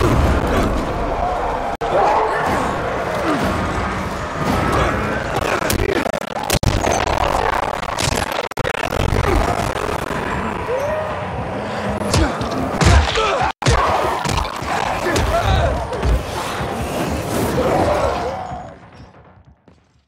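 Blows and impacts thud and crash in a fight.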